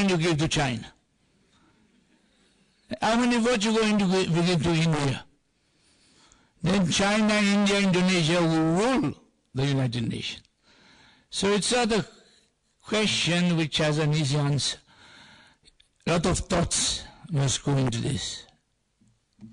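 An elderly man speaks slowly and deliberately through a microphone in a large hall.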